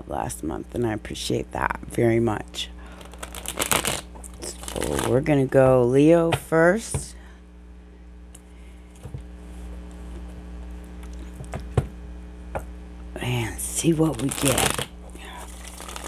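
A woman speaks calmly and close into a headset microphone.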